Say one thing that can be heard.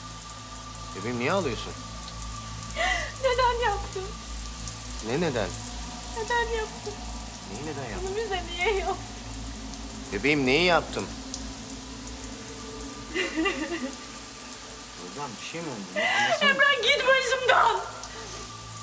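A young woman sobs and cries close by.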